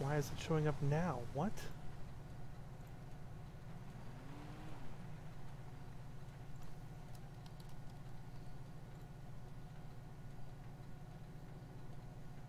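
A car engine idles with a steady low hum.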